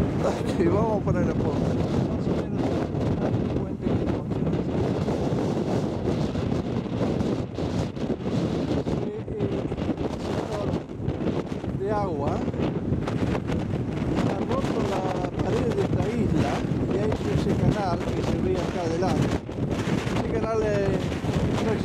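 Waves crash and surge against rocks.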